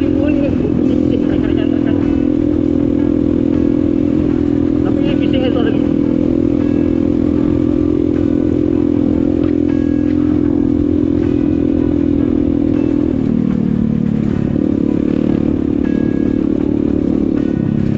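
Tyres rumble and crunch over a rough gravel road.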